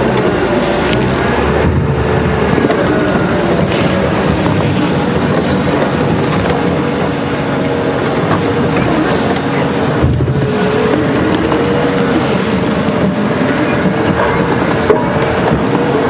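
A vehicle engine rumbles steadily while driving slowly over a bumpy dirt track.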